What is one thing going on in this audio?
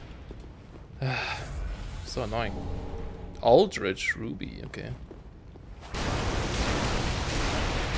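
Flames burst out with a roaring whoosh.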